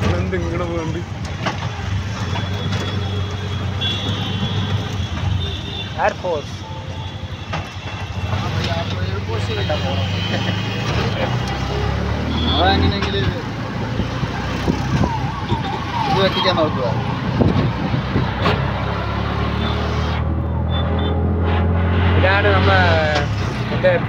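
An auto-rickshaw engine rumbles steadily.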